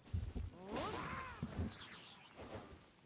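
Fire whooshes and crackles as a sword strikes.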